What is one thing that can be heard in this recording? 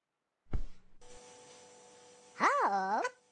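Cheerful electronic game music plays.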